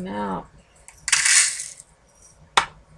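Small beads rattle and clatter inside a jar.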